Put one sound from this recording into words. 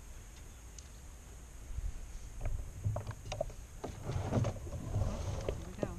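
A fishing reel clicks as it is wound.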